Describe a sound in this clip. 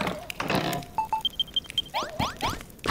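Short electronic chimes beep in quick succession.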